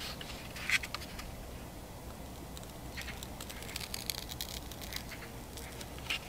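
A burning paper strip crackles softly.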